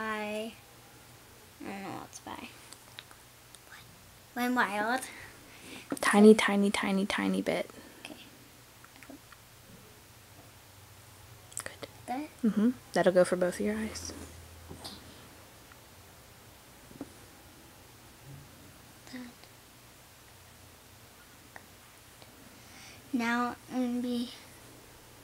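A young girl talks close by, in short bursts with pauses.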